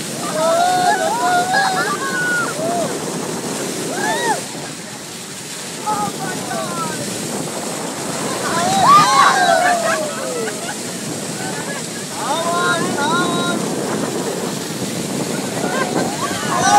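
Dolphins whistle and squeak in high, sliding calls.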